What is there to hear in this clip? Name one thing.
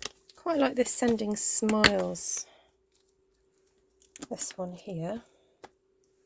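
A plastic case clicks and rattles as it is handled.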